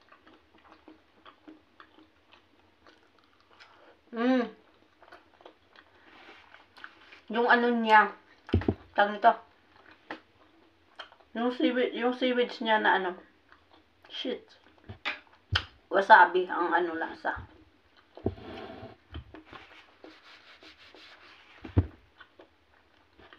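A woman chews food with soft smacking sounds.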